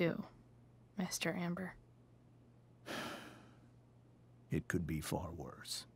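A man speaks calmly and gravely, close by.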